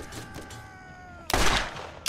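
An explosion bursts.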